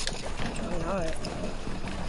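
A pickaxe swings and strikes with sharp clanks.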